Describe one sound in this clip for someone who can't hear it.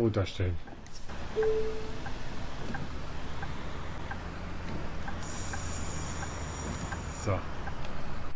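A bus engine hums steadily from inside the cab.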